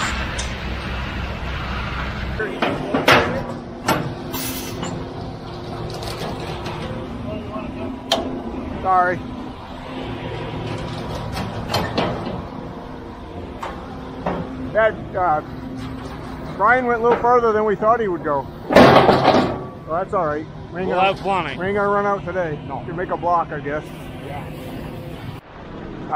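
A concrete mixer truck's engine rumbles steadily nearby.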